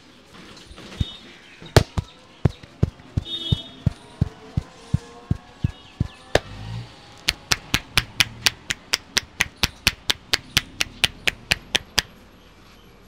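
Hands slap and pat a man's head in a quick, steady rhythm.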